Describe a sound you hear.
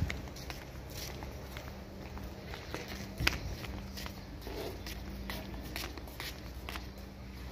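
Footsteps scuff on concrete outdoors.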